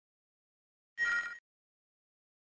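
A short electronic beep sounds.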